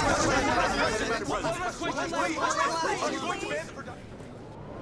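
A crowd of reporters shouts questions all at once.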